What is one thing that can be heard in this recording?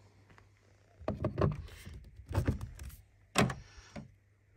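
A charging plug clunks and clicks into a car's socket.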